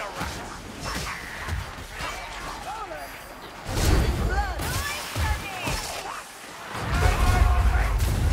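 Heavy weapon blows thud and crash in a fierce fight.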